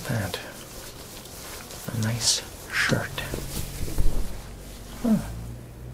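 Fabric rustles as a young man handles a shirt.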